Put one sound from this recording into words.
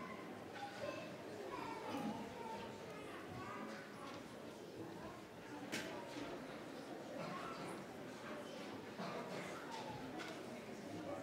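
Several people talk quietly in a large echoing hall.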